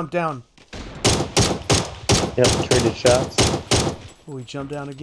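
Rifle shots fire in quick succession.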